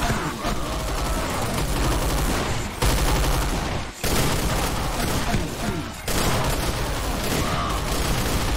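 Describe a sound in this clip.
Gunfire blasts rapidly and loudly.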